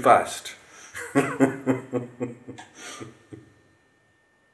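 An older man laughs.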